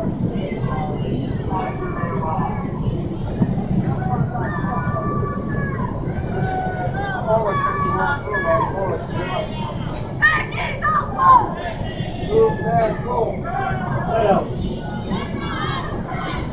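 A crowd of marchers chants loudly outdoors.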